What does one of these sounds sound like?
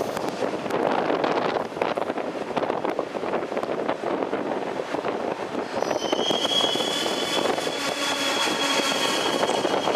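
A train rumbles past on the tracks.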